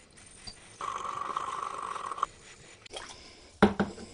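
Water sloshes and splashes in a tub.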